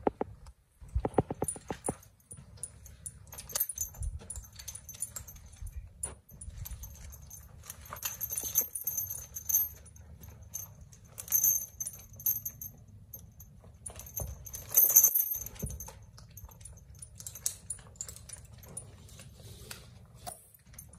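Leather straps creak and rustle against a horse.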